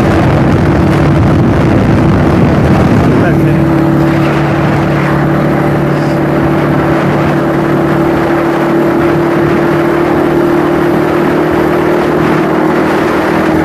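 A motorcycle engine hums steadily while riding at speed.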